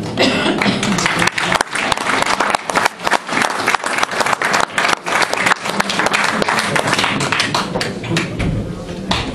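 A crowd applauds in a large room.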